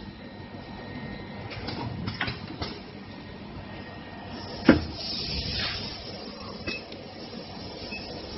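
A machine clicks and clatters as it runs.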